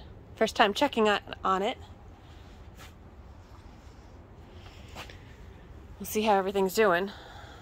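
A light fabric cover rustles as it is lifted.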